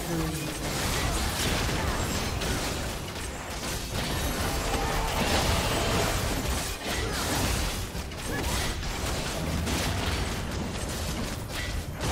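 Spell effects crackle and whoosh in a fast game fight.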